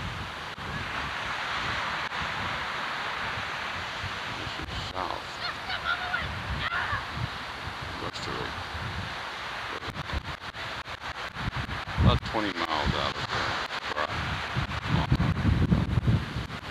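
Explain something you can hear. Wind blows across the microphone.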